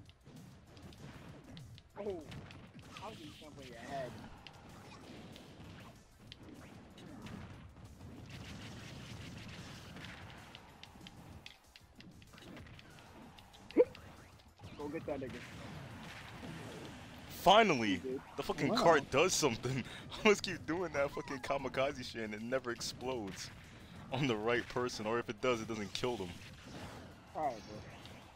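Punches, blasts and explosions crash in a fast arcade fighting game.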